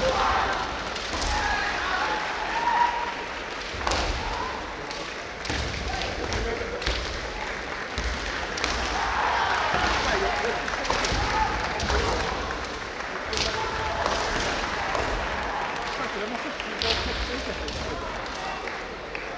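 Kendo fighters shout loudly in a large echoing hall.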